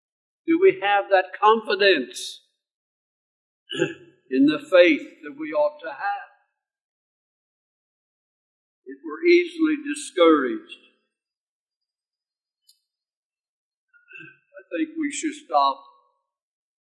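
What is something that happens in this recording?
An elderly man speaks calmly and deliberately into a microphone, with pauses between phrases.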